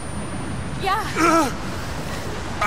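A young woman answers breathlessly.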